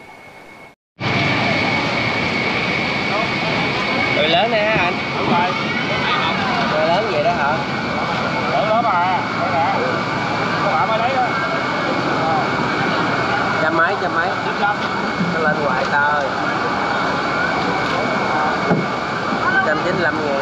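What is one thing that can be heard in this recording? Voices of a busy market crowd chatter all around.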